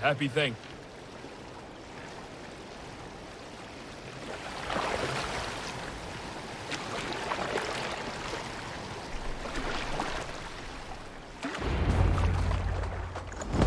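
An oar dips and splashes in water with slow strokes.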